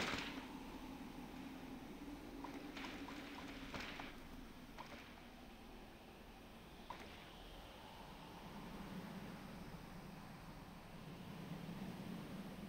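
Water splashes and laps softly all around.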